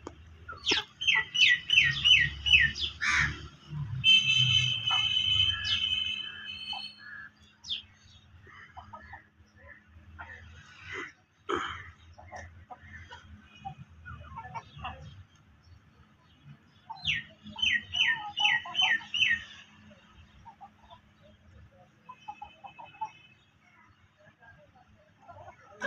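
Hens peck at greens.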